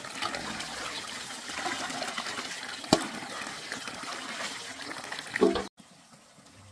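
Water pours and splashes from a basin into a pot.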